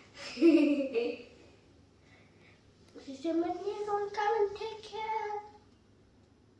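A young girl speaks close by, with animation.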